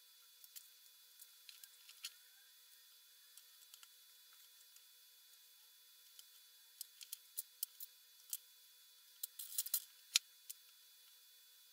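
Metal cookie cutters clink and tap on a mat.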